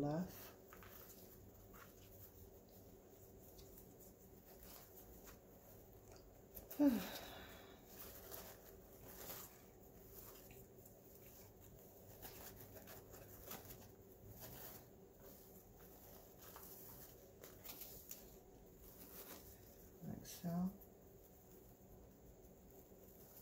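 Ribbon rustles and crinkles as hands shape a bow.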